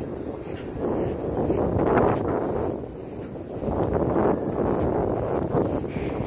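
Footsteps swish through grass outdoors.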